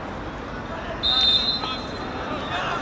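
A referee blows a short whistle blast.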